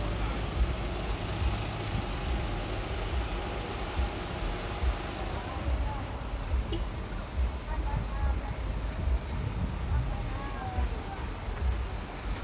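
A car engine hums low as a car creeps slowly past.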